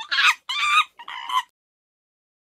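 A monkey chews food with soft smacking.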